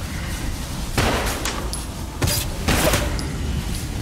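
Magical energy whooshes and crackles in short bursts.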